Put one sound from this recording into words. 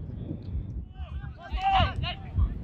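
Young men call out to each other outdoors on a pitch.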